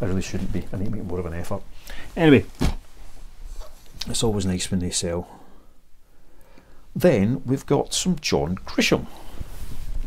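A middle-aged man talks casually, close by.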